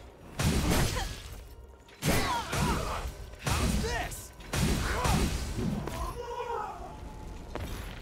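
Heavy sword blows strike with loud, crunching impacts.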